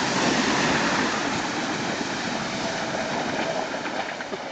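Water splashes loudly as a vehicle drives through a river.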